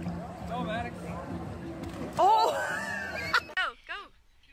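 A boy splashes into a pool.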